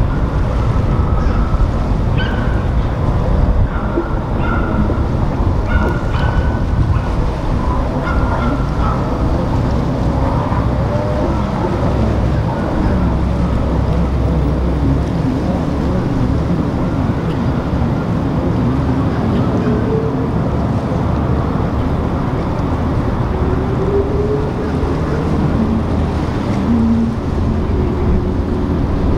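Water rushes and churns in the yacht's wake.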